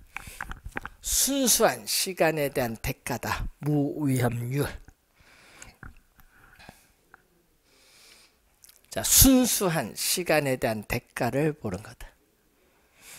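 An elderly man lectures with animation through a microphone.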